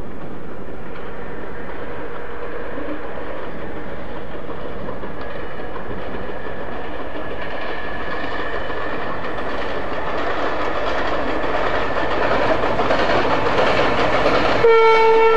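A diesel train engine rumbles, growing louder as the train approaches.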